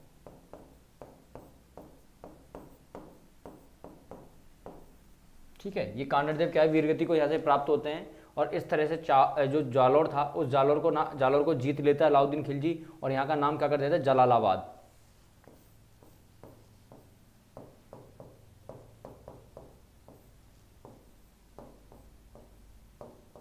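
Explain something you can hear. A marker taps and scrapes on a board.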